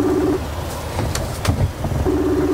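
Laptop keys click a few times.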